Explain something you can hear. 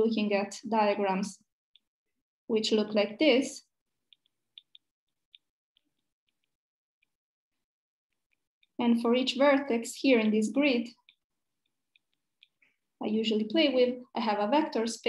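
A young woman speaks calmly through an online call microphone, with pauses.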